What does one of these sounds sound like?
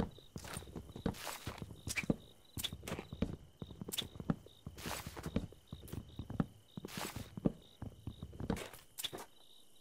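An axe chops wood with repeated hollow knocks.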